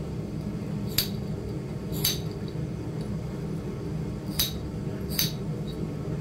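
A metal pick taps sharply against stone.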